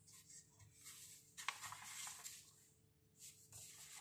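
Paper rustles and crinkles as a sheet is moved by hand.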